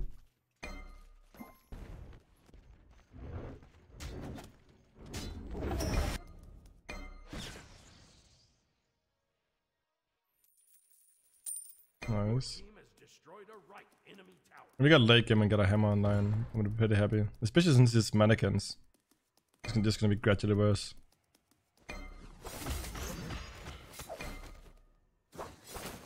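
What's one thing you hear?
Video game fight effects whoosh and clash.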